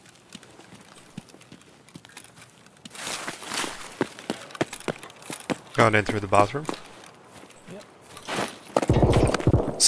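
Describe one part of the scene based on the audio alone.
Footsteps tread on gravel and grass.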